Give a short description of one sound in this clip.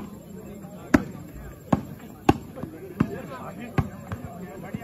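Players strike a volleyball with sharp slaps.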